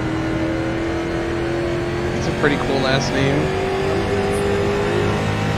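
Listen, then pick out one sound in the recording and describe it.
A race car engine drones steadily at speed.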